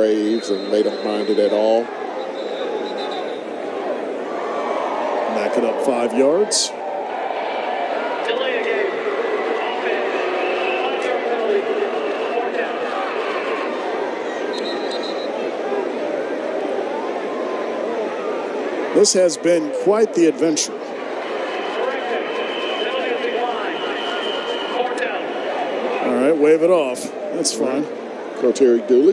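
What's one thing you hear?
A large crowd cheers and murmurs outdoors in a stadium.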